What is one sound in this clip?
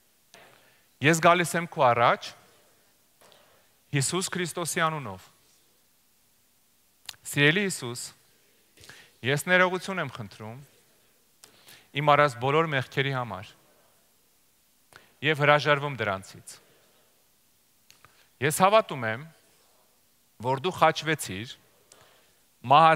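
A middle-aged man speaks calmly through a headset microphone in short phrases with pauses.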